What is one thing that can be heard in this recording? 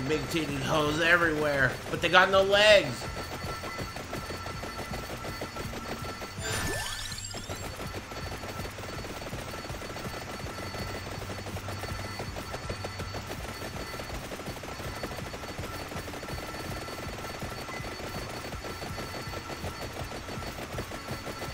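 Rapid game sound effects crackle steadily.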